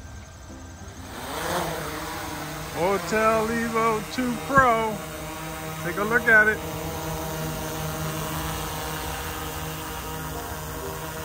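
A drone's propellers whir as it lifts off and hovers close by.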